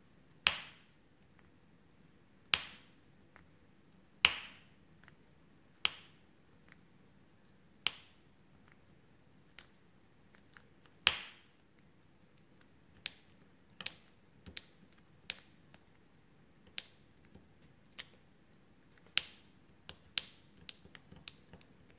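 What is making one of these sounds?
A plastic pen taps and clicks against a plastic tray.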